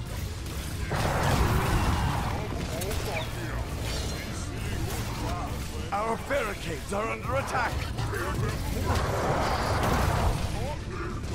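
Magic blasts and clashing weapons burst out in a noisy fight.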